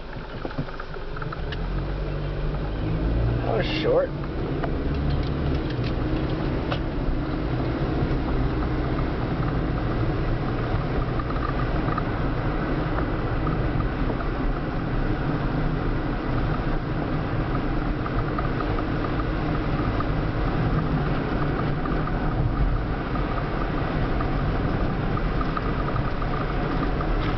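A car engine hums steadily as the car drives along, heard from inside.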